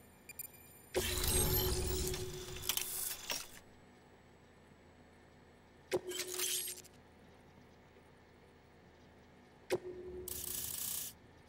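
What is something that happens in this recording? A swelling electronic whoosh sounds as new panels open.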